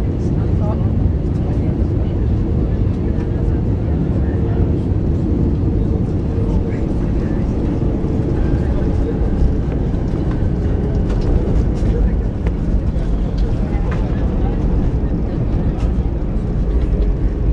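Jet engines roar loudly and steadily.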